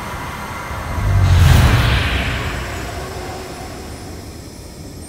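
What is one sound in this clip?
A magical burst swells with a rushing whoosh and fades.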